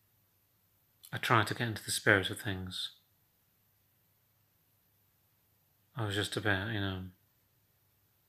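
A young man speaks calmly and quietly close to a phone microphone.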